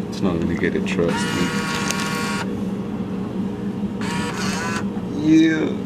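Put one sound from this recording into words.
A vending machine's bill slot whirs as it pulls in a banknote.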